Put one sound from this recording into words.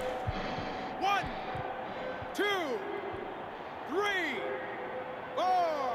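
A man counts out loud in a commanding voice.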